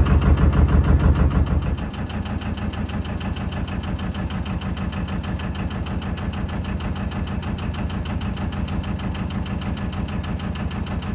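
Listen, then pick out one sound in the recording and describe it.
A boat's diesel engine chugs steadily close by.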